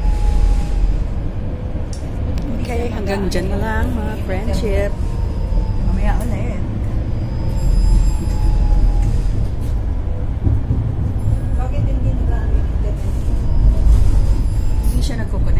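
A tram rumbles steadily along.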